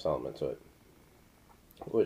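Liquid pours from a bottle into a glass.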